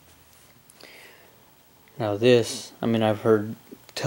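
A knife handle scrapes softly against a leather sheath.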